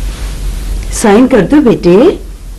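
A young woman speaks briefly with feeling, close by.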